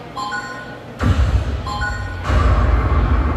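A heavy thumping beat plays loudly from a loudspeaker.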